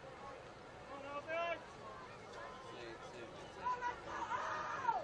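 Young men on a sideline shout and call out.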